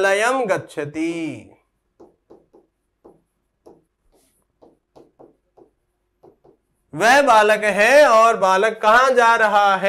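A man speaks with animation into a close microphone, as if teaching.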